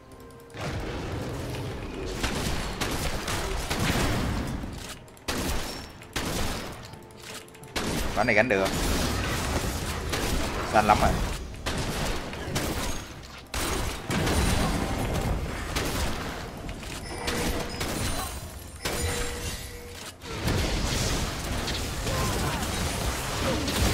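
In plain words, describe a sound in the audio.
Video game sound effects of blows and spells play.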